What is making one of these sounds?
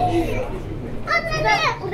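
A young child calls out close by.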